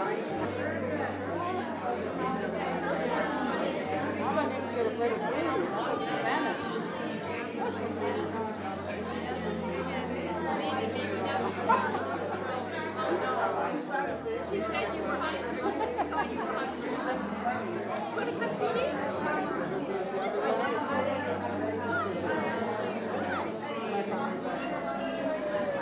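Many men and women chatter nearby.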